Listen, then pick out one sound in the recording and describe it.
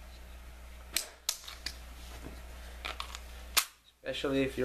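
A compact pistol and its magazine click as they are handled.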